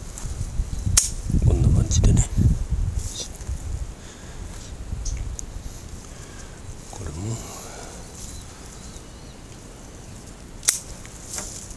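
Garden shears snip through twigs.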